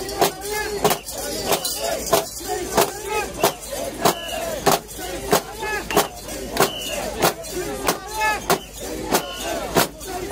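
A bell clangs in a steady, rapid beat.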